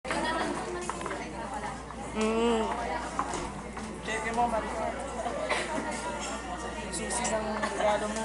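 A crowd of young people chatter and call out nearby.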